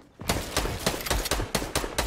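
A pickaxe strikes with a sharp thwack.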